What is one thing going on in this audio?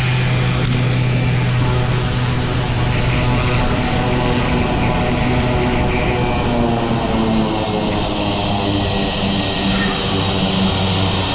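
A propeller plane's engine drones steadily as the plane taxis closer.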